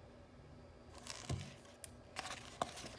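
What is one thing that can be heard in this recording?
Book pages rustle and flip as they are turned.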